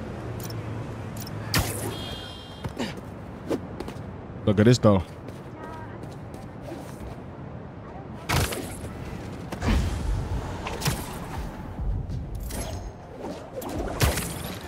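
Rushing air whooshes past during fast swinging moves.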